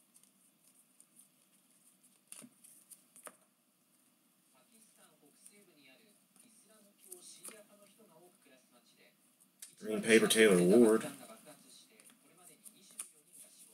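Trading cards slide and flick softly against each other as they are shuffled by hand.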